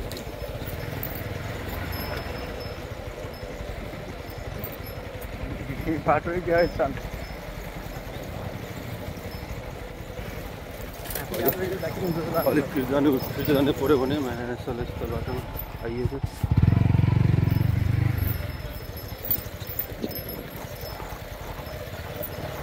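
A motorcycle rides on a dirt track.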